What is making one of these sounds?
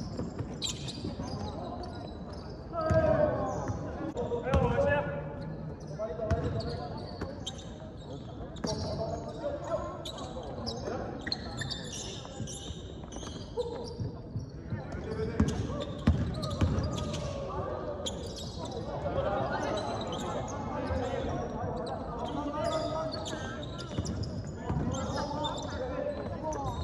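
A basketball bounces on a hard court, echoing in a large hall.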